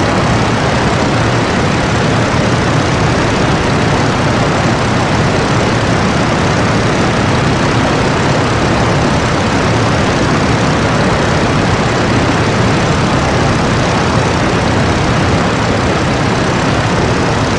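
Wind rushes past an open cockpit.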